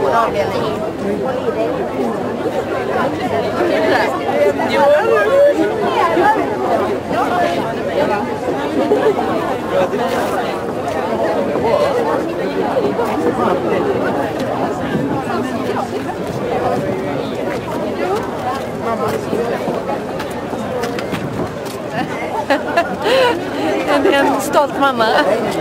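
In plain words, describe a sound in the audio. A large outdoor crowd chatters.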